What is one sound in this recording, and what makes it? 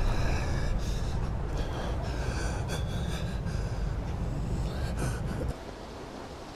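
An elderly man speaks in a low, rough voice, close by.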